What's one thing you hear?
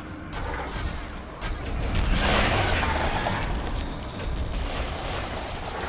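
Fiery meteors streak down and explode.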